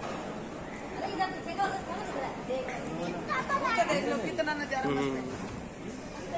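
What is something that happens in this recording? Women and men chat calmly nearby.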